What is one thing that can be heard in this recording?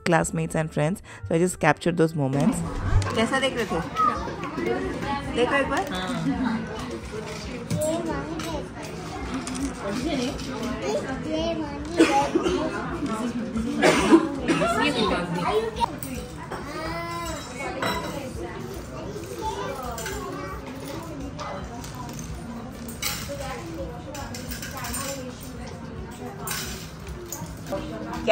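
Young children talk and babble nearby.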